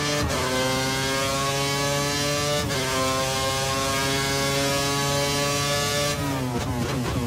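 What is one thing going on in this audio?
A racing car engine screams at high revs, shifting up through the gears.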